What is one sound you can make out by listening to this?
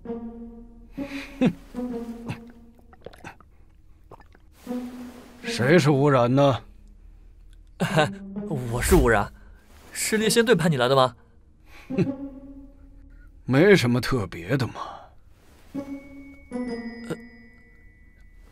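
A man speaks in a low, calm voice.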